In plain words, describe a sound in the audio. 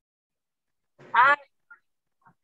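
A woman speaks loudly for a moment over an online call.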